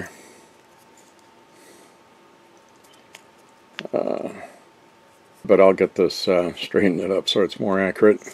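Fingers handle a small metal piece with light clicks.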